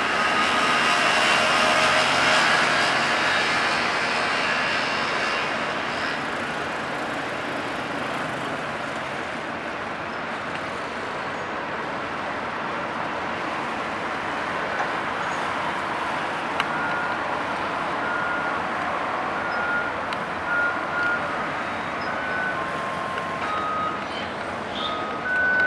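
A large ship's engine rumbles low and steadily.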